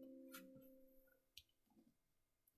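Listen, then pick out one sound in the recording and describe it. An acoustic guitar chord rings out and fades.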